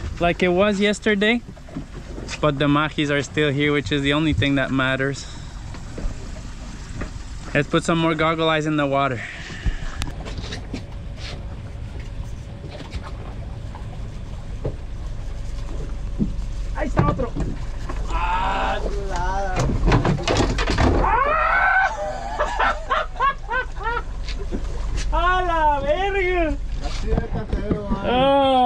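A boat motor hums low and steadily.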